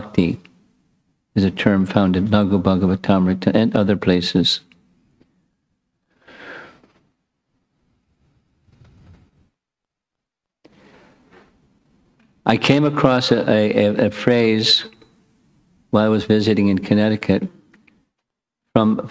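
An elderly man speaks calmly into a close microphone, with pauses.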